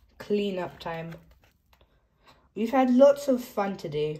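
A board book's stiff page is turned.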